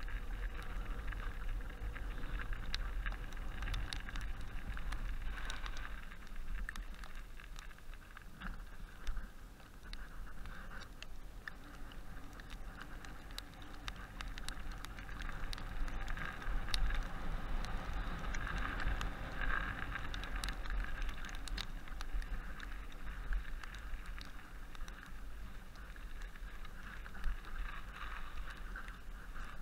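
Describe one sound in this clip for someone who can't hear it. Wind rumbles steadily across a microphone outdoors.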